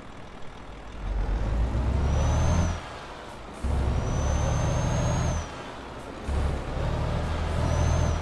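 A truck engine revs up in bursts, dropping between gear changes.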